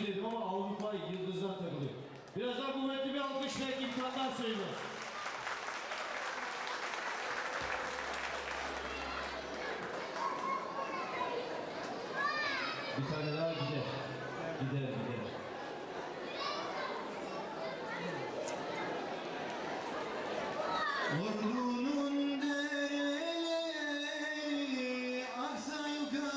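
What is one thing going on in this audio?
A young man sings into a microphone through loudspeakers in an echoing hall.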